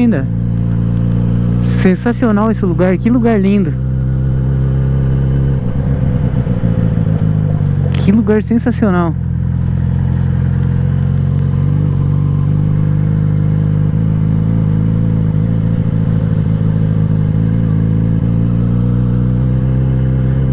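A motorcycle engine rumbles steadily up close.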